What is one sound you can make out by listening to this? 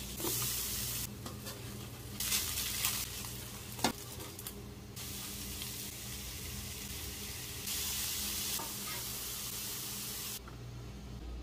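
Food sizzles loudly in a hot frying pan.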